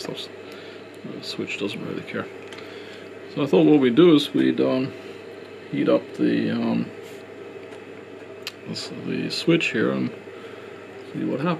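A small plastic connector clicks and rustles as a cable is handled close by.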